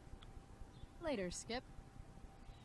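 A young woman says a short farewell calmly, close by.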